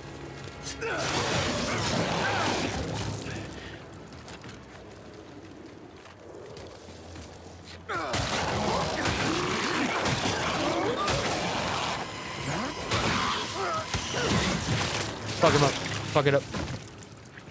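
Heavy blows tear into a creature with wet, squelching splatter.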